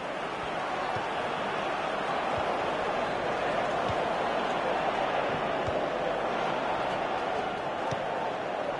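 A football is kicked with dull thuds.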